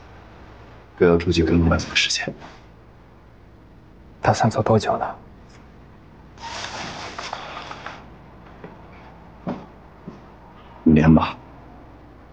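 A young man answers in a relaxed, friendly voice nearby.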